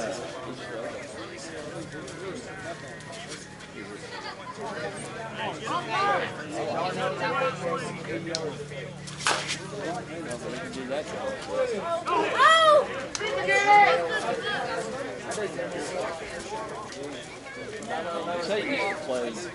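Men shout and call out across an open field outdoors.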